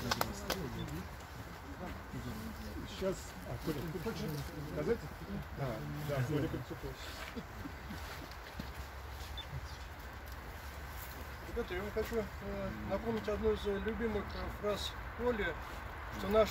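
A man speaks calmly to a small gathering outdoors.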